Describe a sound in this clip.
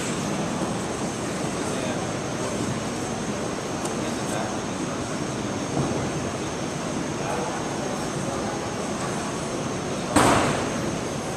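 Two grapplers scuff and shift their bodies on a foam mat.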